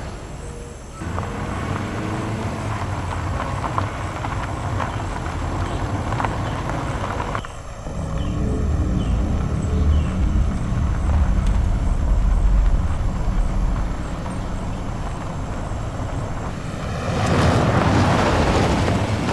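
A vehicle engine rumbles low and steady as it drives.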